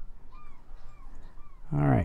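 A fishing reel winds in line.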